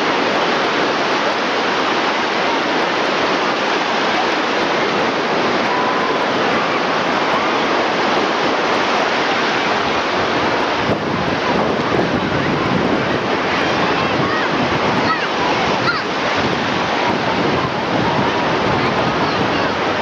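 Small waves wash and break on the shore.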